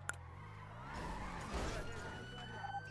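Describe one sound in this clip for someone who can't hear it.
Tyres squeal briefly as a car turns.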